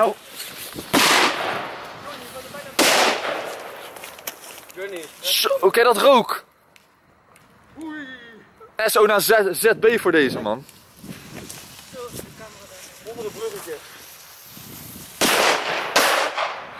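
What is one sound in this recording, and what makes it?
Firecrackers bang loudly outdoors, a few times.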